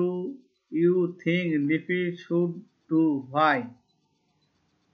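A man speaks clearly into a close microphone, like a teacher explaining.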